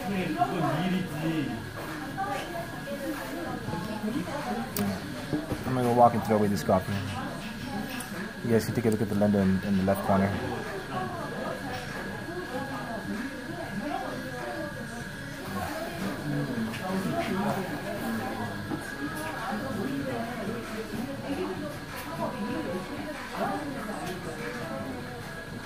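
Many people chatter quietly in the background.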